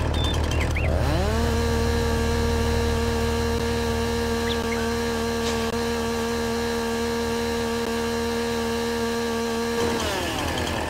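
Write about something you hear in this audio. A chainsaw revs up and holds a steady, high whine, then drops back down.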